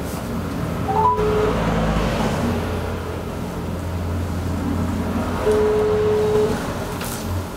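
A phone gives short electronic beeps.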